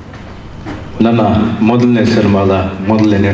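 An elderly man speaks calmly through a microphone and loudspeakers in a large echoing hall.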